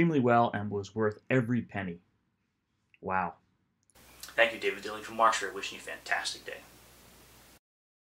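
A middle-aged man talks calmly and directly, close to a microphone.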